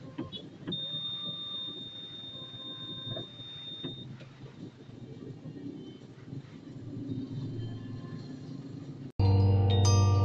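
Motor scooters idle and creep along in slow traffic, heard from inside a car.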